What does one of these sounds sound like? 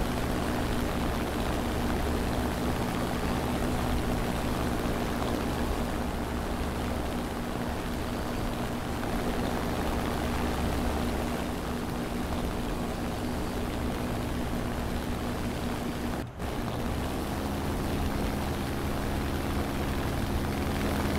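Twin piston aircraft engines drone steadily and loudly.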